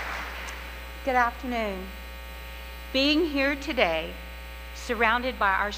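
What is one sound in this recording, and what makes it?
A second woman speaks calmly into a microphone in a large echoing hall.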